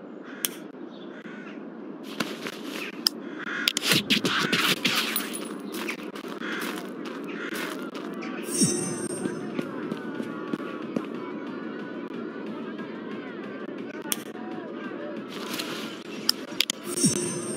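Soft clicks tap in quick succession.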